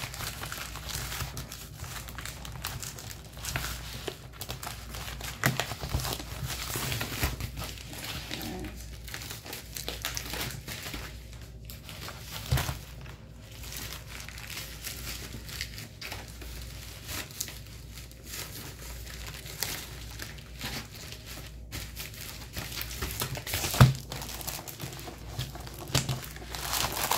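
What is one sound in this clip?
A plastic mailer bag rustles and crinkles as it slides across a table.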